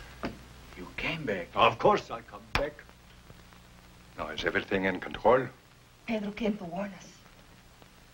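An elderly man speaks firmly and gravely, close by.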